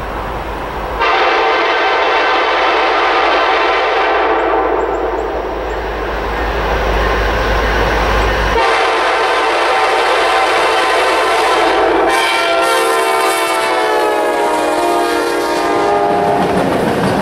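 A train horn blares loudly in long blasts, dropping in pitch as the locomotive passes close by.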